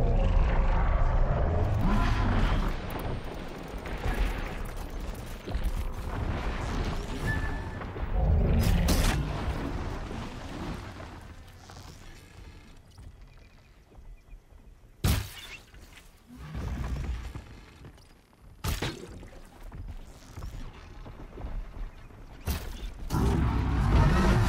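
Machines explode with loud bangs.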